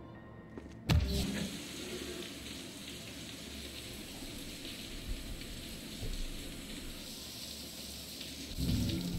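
Water from a shower sprays and splashes steadily.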